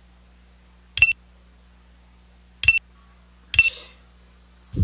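Short electronic beeps sound.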